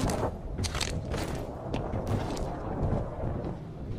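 Footsteps clatter on a metal roof.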